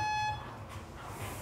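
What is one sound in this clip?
An electronic timer beeps once.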